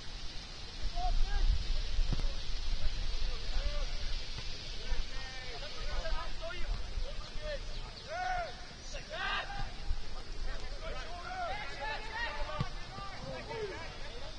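Players shout to each other across an open outdoor field.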